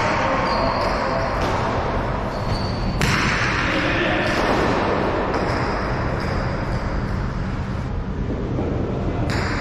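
A ball smacks against a wall with a sharp echo in a large hall.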